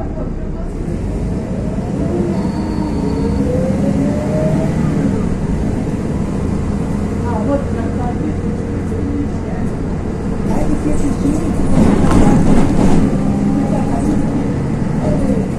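Traffic rumbles steadily on a busy road nearby.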